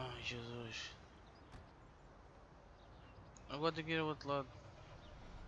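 A young man talks into a close microphone.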